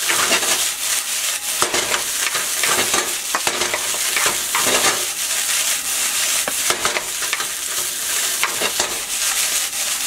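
A wooden spatula scrapes and knocks against a metal pan.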